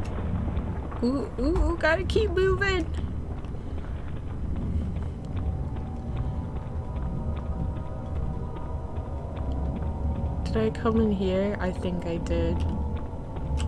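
A young woman speaks animatedly into a close microphone, her voice rising and falling.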